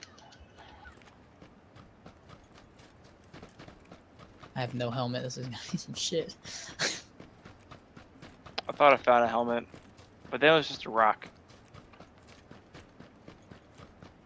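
Footsteps run quickly over grassy ground.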